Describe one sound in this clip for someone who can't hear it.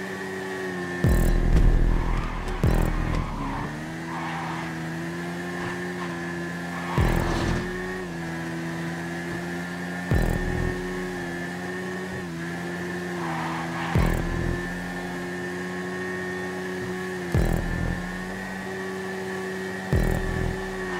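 A motorcycle engine roars briefly as gears shift, again and again.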